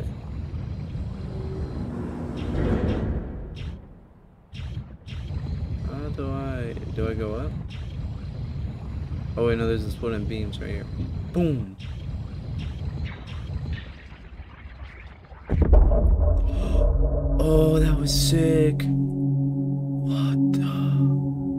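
A small submarine's motor hums and churns underwater.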